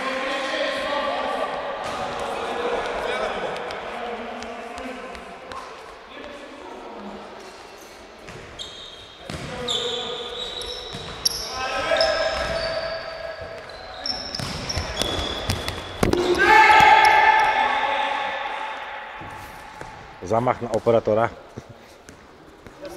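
Men shout to each other across a large echoing hall.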